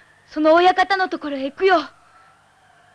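A boy speaks with alarm, close by.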